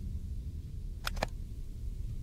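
A soft click sounds.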